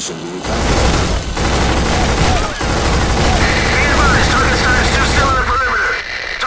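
An assault rifle fires rapid bursts.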